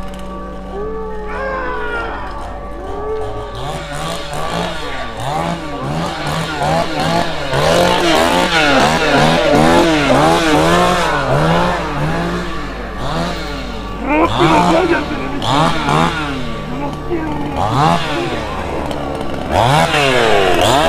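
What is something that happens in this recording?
A crowd of young people screams and shouts nearby.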